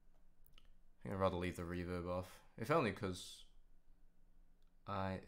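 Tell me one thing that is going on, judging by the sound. A young man speaks with animation close to a microphone.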